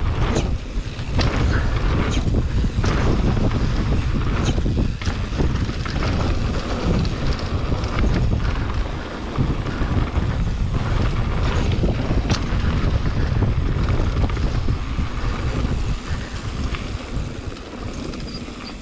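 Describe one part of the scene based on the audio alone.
Bicycle parts rattle and clack over bumps.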